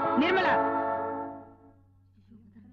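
A young woman sings a long, held note.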